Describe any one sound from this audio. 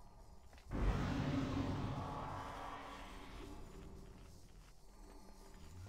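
Game spell effects whoosh and rumble in a battle.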